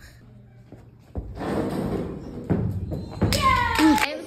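A girl's feet thud on a mat as she tumbles.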